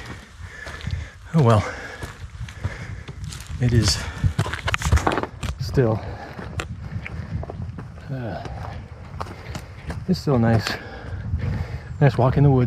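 A man talks close by, breathing heavily between words.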